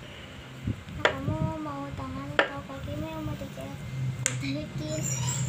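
A young girl talks softly up close.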